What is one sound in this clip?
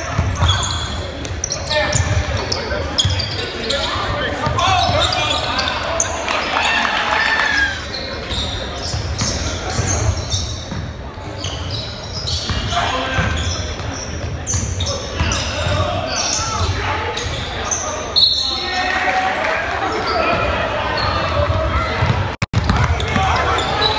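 A basketball bounces on the floor with dull thumps.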